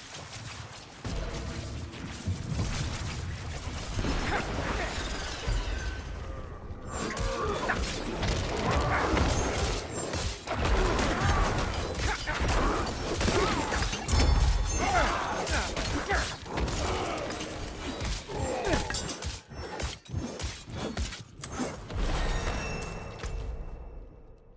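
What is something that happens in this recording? Blades slash and strike in a rapid, busy fight.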